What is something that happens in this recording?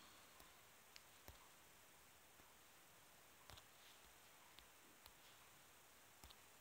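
Soft interface clicks sound now and then as menus open.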